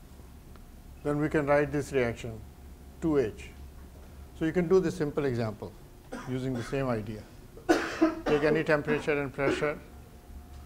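An older man lectures calmly.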